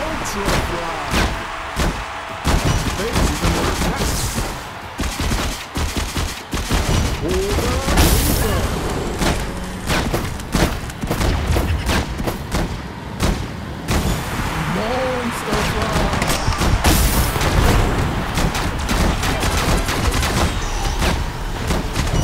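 Video game guns fire in rapid bursts with explosive blasts.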